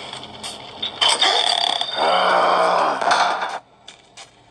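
A creaking door swings open through a small tablet speaker.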